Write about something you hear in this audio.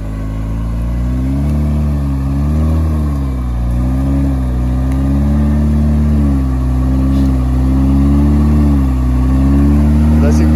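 Mud squelches under spinning tyres.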